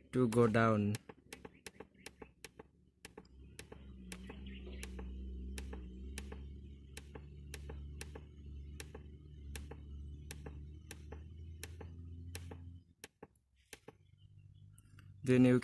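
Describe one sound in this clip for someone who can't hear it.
Buttons on a control panel click in a quick, steady series.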